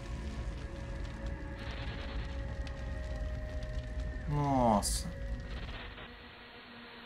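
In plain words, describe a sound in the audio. A deep explosion rumbles.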